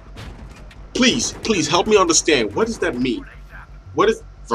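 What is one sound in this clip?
A young man speaks loudly and excitedly close to a microphone.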